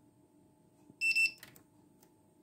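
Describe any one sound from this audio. A coffee machine gives a short beep when a button is touched.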